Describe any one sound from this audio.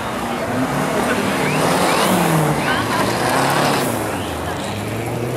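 A rally car engine revs hard as the car accelerates past, outdoors.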